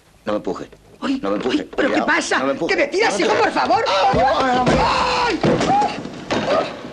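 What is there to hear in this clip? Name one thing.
A middle-aged woman screams loudly and shrilly.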